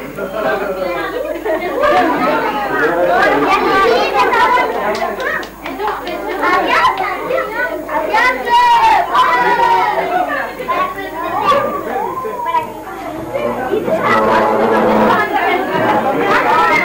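Children chatter and shout excitedly all around, close by.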